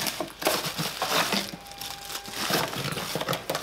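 Cardboard rustles and scrapes as a small box is opened by hand.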